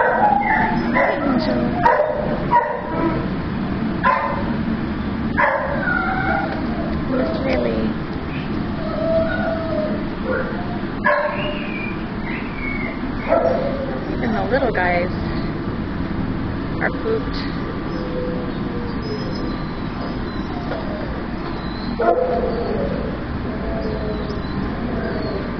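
A dog barks loudly in an echoing room.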